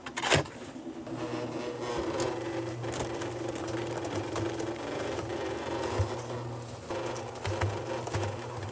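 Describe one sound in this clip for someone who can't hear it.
A cement mixer rumbles steadily.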